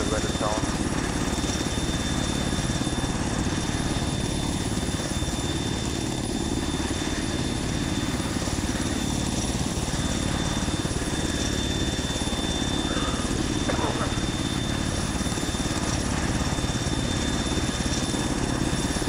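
A helicopter's rotor thumps loudly and steadily close by.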